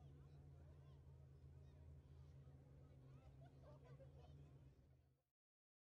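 Engines idle with a low, faint rumble.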